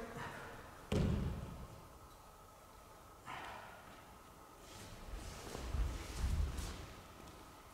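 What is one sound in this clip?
Bare feet thump and stamp on a wooden floor.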